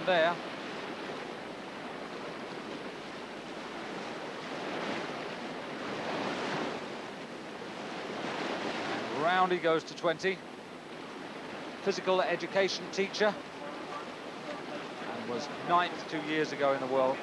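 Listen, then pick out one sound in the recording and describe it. Whitewater rushes and churns loudly.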